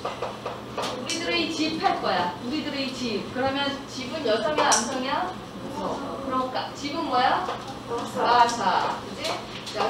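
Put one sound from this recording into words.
A woman speaks calmly to a room.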